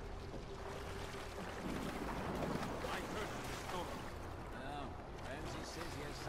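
A man splashes as he swims through water.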